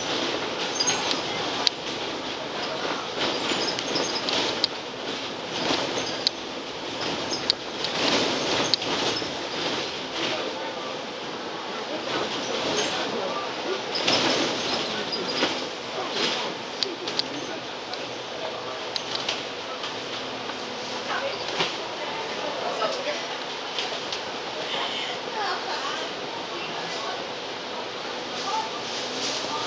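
A bus engine hums steadily while driving along a road.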